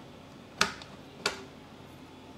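A small plastic bit clicks sharply as it is pulled from a case.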